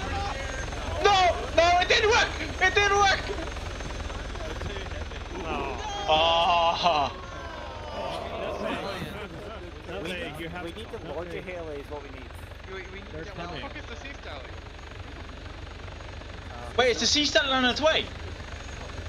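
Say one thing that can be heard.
A man shouts loudly over a microphone.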